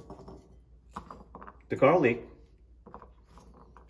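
Garlic cloves drop and tap softly onto a wooden chopping board.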